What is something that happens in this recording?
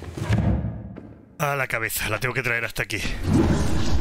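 A body falls heavily to the floor.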